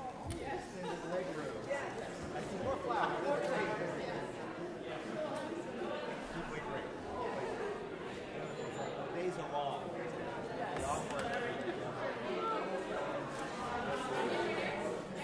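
An audience chatters and murmurs in a large echoing hall.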